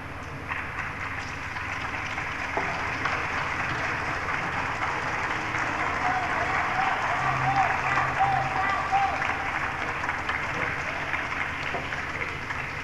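City traffic hums steadily as cars drive along a wide street.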